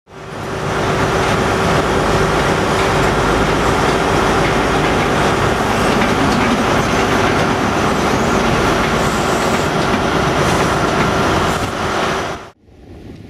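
A diesel train engine roars loudly and steadily close by.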